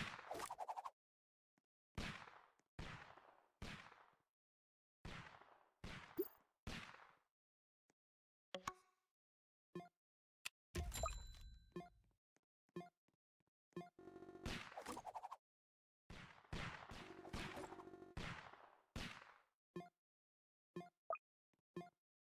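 Gunshots ring out again and again, each with a short ringing tail.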